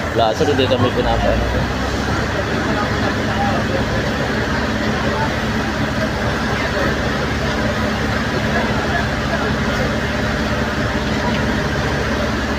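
A fire truck engine rumbles steadily.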